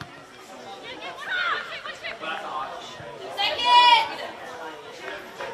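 Young women shout across an open field.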